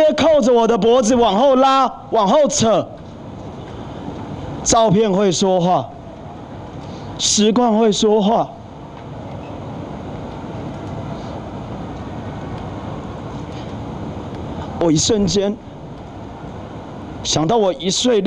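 A young man speaks emotionally into a microphone, in short bursts with pauses.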